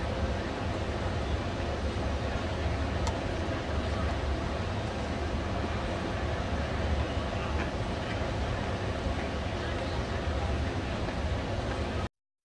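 A large outdoor crowd murmurs and chatters steadily.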